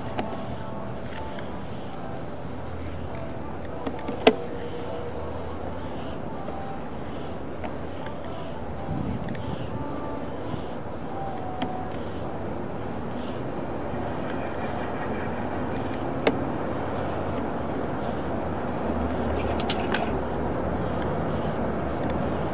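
Water trickles steadily through a pipe.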